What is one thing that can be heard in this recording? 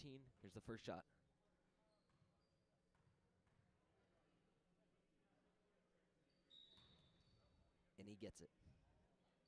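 Young men shout across a large echoing gym.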